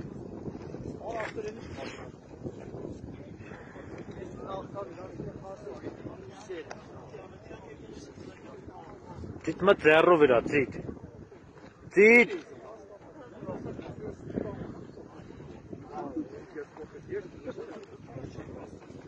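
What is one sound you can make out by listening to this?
Several men talk and call out outdoors, some close by.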